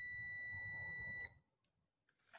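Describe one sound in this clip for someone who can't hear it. A multimeter beeps with a steady high tone.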